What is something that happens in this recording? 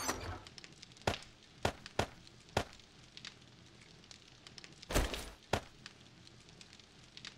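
Short soft clicks sound as items are moved between slots.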